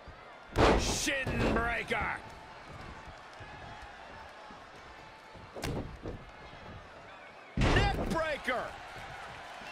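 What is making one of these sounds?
Bodies slam heavily onto a wrestling mat with loud thuds.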